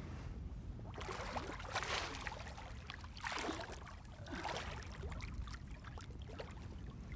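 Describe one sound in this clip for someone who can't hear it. Water splashes close by.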